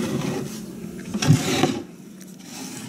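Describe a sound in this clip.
A plate scrapes across a wooden table.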